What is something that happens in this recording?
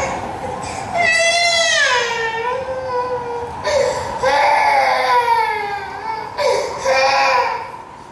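A woman sings through loudspeakers in a large hall.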